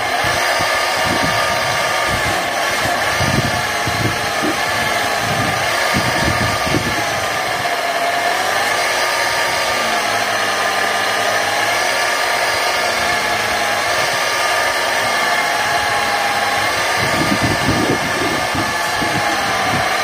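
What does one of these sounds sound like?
A steel blade grinds harshly against a spinning wheel.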